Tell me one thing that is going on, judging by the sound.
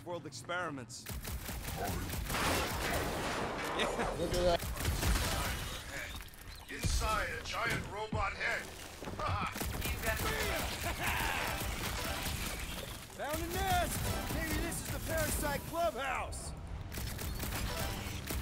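Gunfire and explosions from a video game crackle and boom.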